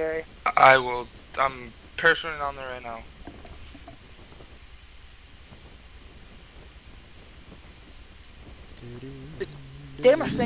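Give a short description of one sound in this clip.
Wind rushes steadily past a parachute.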